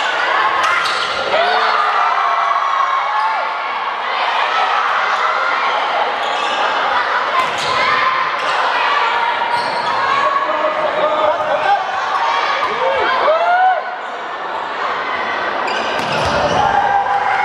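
A crowd of young women cheers and shouts in a large echoing hall.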